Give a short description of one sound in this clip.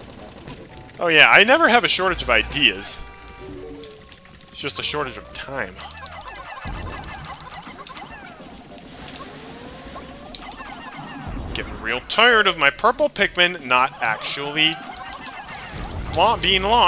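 Many small game creatures chirp and squeak in high voices.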